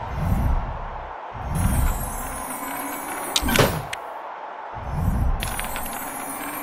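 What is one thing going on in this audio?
A magic spell hums and swirls in low, pulsing surges.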